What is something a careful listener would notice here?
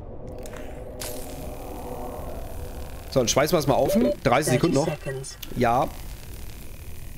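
A laser cutter hisses and crackles against metal.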